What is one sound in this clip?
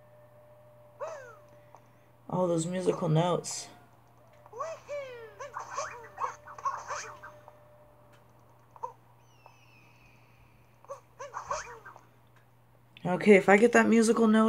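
A cartoon character shouts short high-pitched grunts and yelps while jumping.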